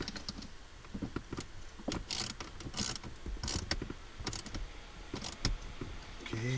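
Plastic parts click and rattle as they are handled up close.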